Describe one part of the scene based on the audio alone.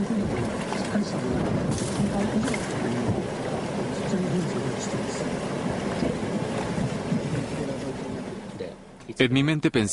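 Floodwater surges and roars past.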